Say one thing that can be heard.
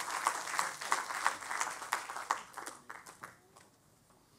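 An audience claps and slowly fades.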